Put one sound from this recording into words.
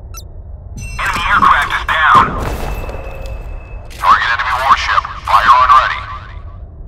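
Heavy naval guns fire in loud booming bursts.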